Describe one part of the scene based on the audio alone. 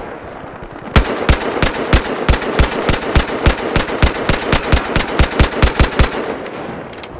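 A rifle fires a rapid series of loud shots.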